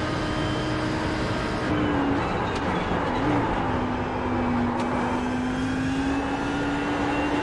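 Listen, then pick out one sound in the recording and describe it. A racing car engine roars loudly, dropping in pitch as the driver shifts down for a corner.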